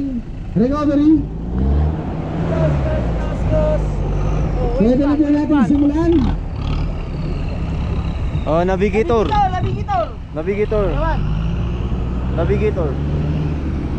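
Men nearby shout and cheer loudly outdoors.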